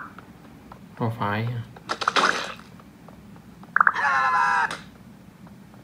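Short game sound effects chime from a small device speaker.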